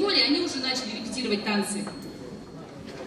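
A young woman speaks through a microphone over loudspeakers in a hall.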